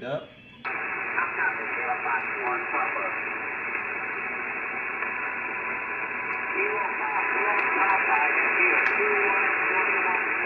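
A voice speaks faintly through a radio amid the static.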